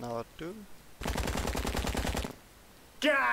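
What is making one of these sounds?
A rapid burst of gunfire rattles.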